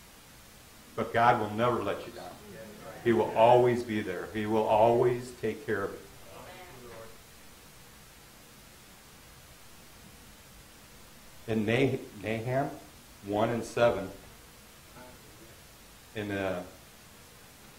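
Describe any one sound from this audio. A middle-aged man speaks calmly into a microphone in an echoing room, with long pauses.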